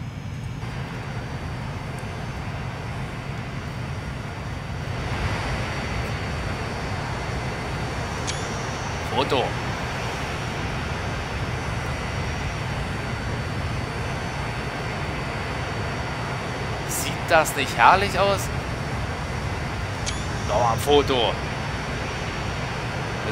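A jet airliner's engines roar as it speeds down a runway and takes off.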